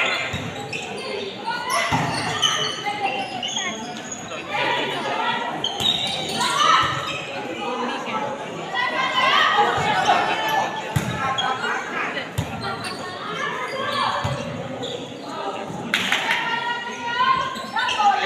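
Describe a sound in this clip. A crowd of spectators cheers and shouts throughout a large echoing hall.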